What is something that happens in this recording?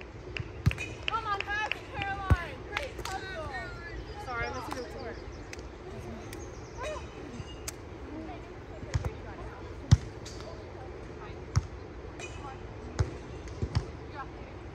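A volleyball is hit with sharp thumps.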